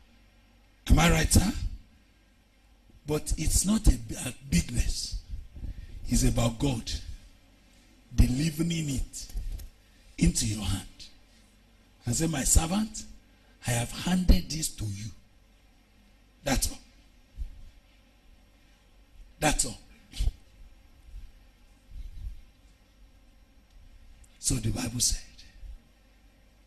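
A man preaches forcefully into a microphone, in bursts of loud, animated speech with pauses between.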